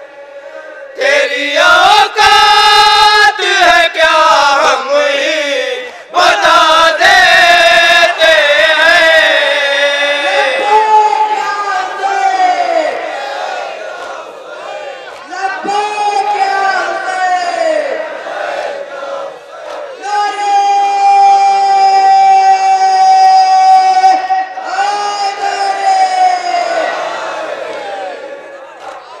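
A young man sings a loud mournful chant through a loudspeaker.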